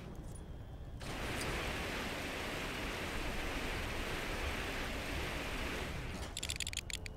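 An electric blast crackles loudly.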